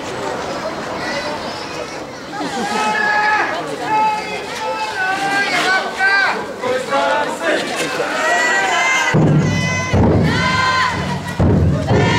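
A group of young men chant loudly in unison outdoors.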